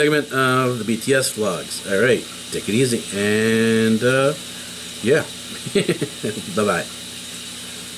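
A middle-aged man talks calmly and close to a microphone.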